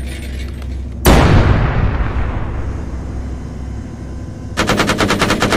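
A heavy explosion booms and rumbles away.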